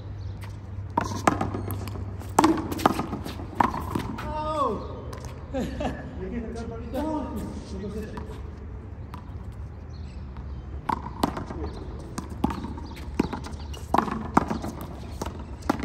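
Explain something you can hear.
A rubber ball smacks sharply against a wall, outdoors.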